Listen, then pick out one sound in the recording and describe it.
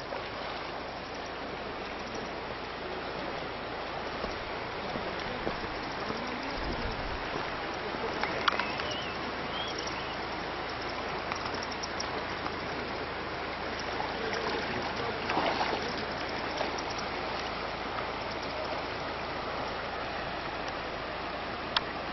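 A shallow river rushes and burbles over stones outdoors.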